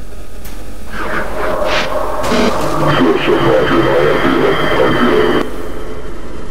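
A loud harsh rumbling roars from behind a metal shutter.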